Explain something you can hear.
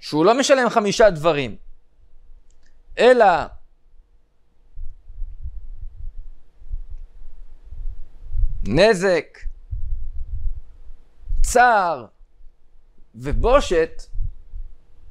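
A man speaks calmly and deliberately into a close microphone, with pauses.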